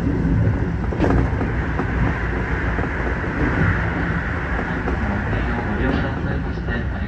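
An oncoming train rushes past close by with a roar of wind.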